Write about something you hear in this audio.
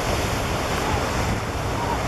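Waves wash onto a beach with a steady rushing roar.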